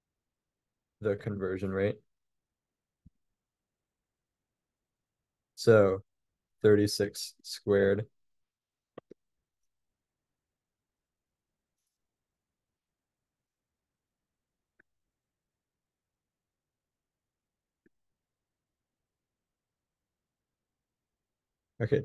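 A young man speaks calmly and close to a microphone, in short bursts with long pauses.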